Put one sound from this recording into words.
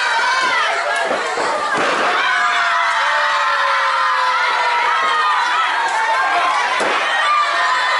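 Wrestlers thud heavily onto a ring mat.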